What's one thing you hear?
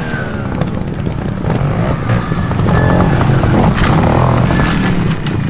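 Knobby tyres crunch and scrape over rocks and dirt.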